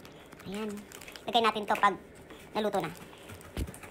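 A plastic packet crinkles in a hand.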